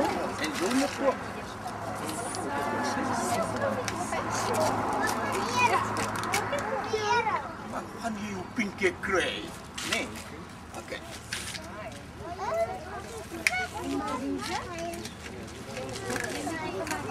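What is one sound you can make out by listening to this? A man talks calmly to a group of young children outdoors.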